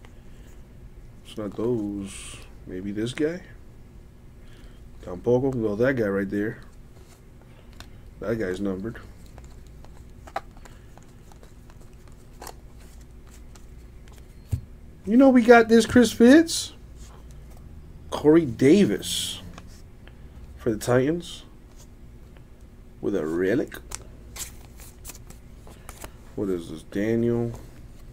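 Glossy trading cards slide and rustle against each other in hands.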